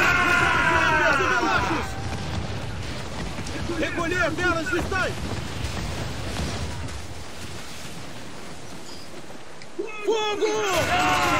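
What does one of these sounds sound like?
Stormy waves roar and crash around a sailing ship.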